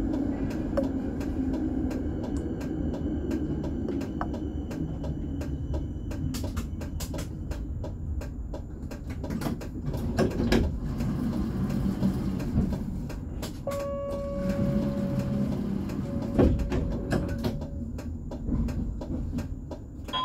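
A tram rumbles along its rails with a low, steady hum.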